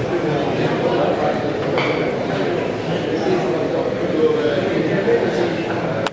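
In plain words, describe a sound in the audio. A bowling ball rolls across the floor.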